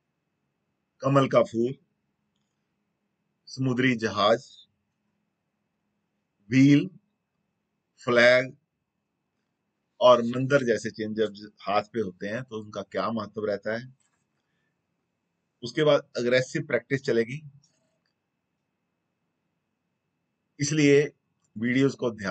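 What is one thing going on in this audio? A middle-aged man speaks calmly in short phrases, close to the microphone, with silent pauses between.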